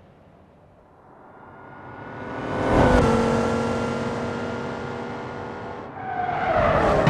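Two car engines roar loudly as the cars speed along.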